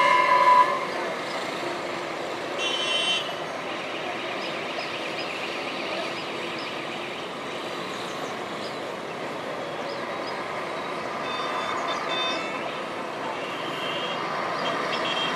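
Distant city traffic hums steadily.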